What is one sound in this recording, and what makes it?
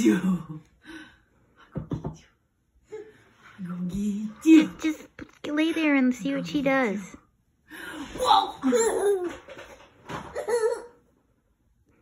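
A young woman talks playfully and laughs close by.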